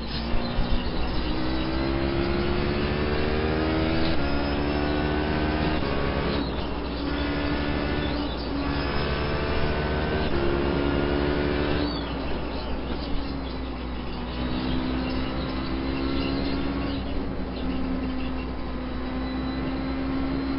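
A racing car engine roars and revs up and down through the gears.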